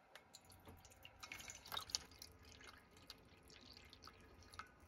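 Water pours and splashes into a metal cup.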